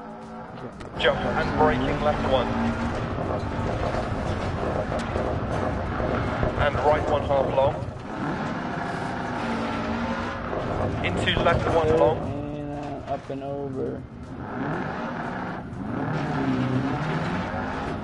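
Tyres crunch and skid over gravel.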